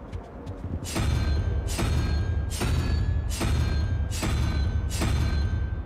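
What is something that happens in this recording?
A heavy mechanism turns with loud rhythmic clanks and a low rumble.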